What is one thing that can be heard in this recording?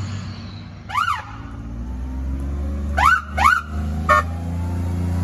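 A siren gives several short yelps.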